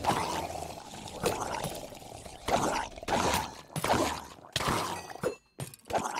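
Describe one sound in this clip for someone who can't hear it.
Sword blows strike monsters in quick succession.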